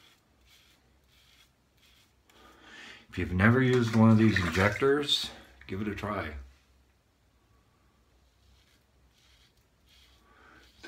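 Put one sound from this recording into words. A razor scrapes through stubble in short strokes.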